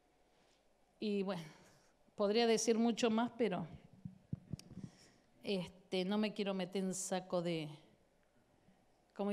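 A woman speaks with feeling into a microphone, heard over a loudspeaker.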